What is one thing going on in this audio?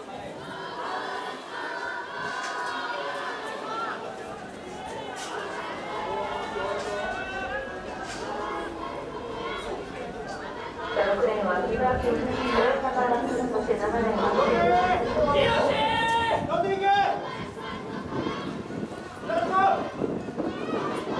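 Spectators shout and cheer the runners on, growing louder near the finish.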